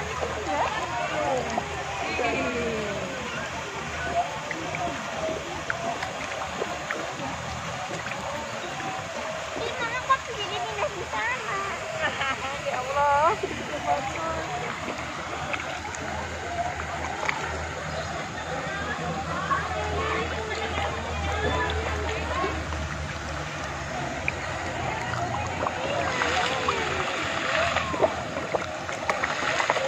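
Many fish splash and slurp at the surface of the water close by.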